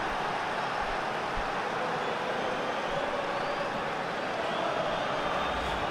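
A large stadium crowd roars and cheers loudly.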